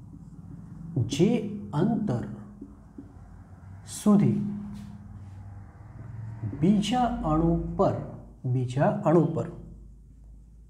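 A man speaks calmly in a slow, teaching voice.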